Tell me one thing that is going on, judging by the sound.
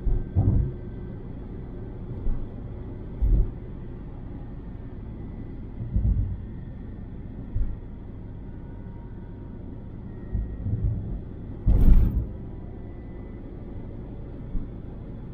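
Tyres thump over joints in the road.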